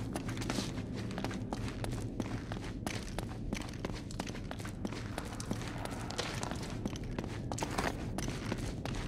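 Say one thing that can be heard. Footsteps crunch over rubble and gravel at a running pace.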